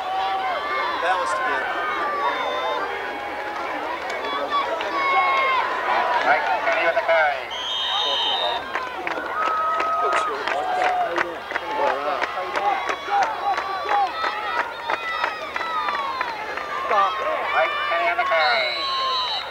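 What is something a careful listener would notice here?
A crowd of spectators talks and calls out nearby, outdoors.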